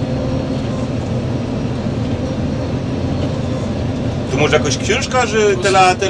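A combine harvester's engine drones steadily from inside the cab.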